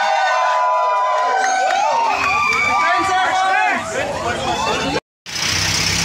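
A crowd of men and women cheers and whoops loudly in an echoing hall.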